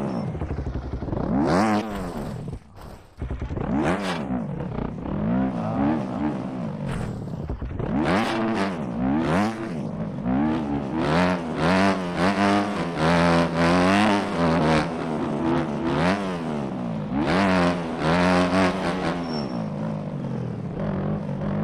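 A dirt bike engine revs up and down sharply, close by.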